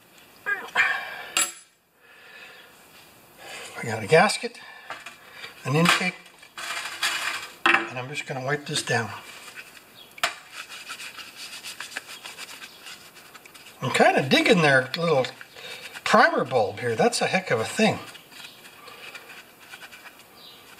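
Small metal and plastic parts clink and rattle as they are handled.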